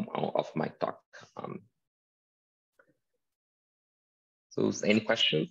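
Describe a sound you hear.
A young man talks calmly through an online call microphone, pausing briefly.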